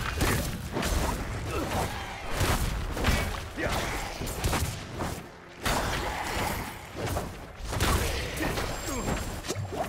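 Fiery spell blasts and impacts crackle in a game.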